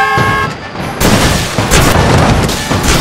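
A bus crashes into a train with a loud crunching of metal.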